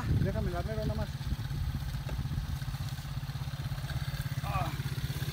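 A quad bike engine idles with a steady low rumble.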